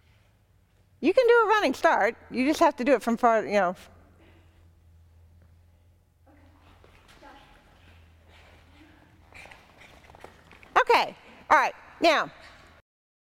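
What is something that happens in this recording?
A woman calls out excitedly to a dog in a large echoing hall.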